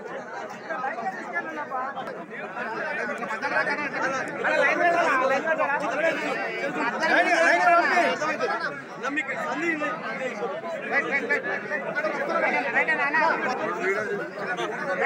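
A crowd of men talk and chatter all around, close by.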